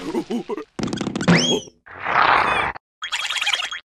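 A cartoon creature cries out in a squeaky, excited voice.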